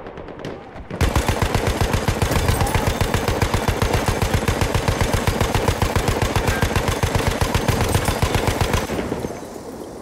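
A machine gun fires a long, rapid burst.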